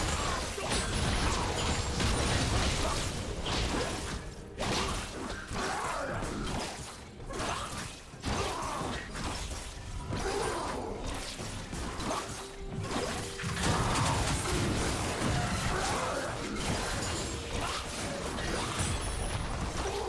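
Fantasy battle sound effects clash and crackle as spells are cast.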